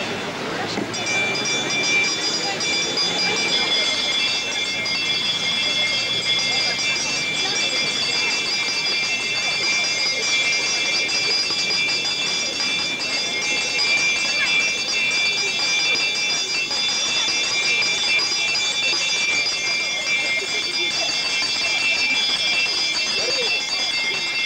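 A small handbell rings steadily.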